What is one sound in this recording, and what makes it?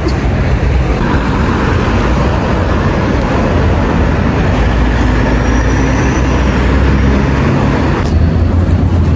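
Car traffic rumbles past on a busy road.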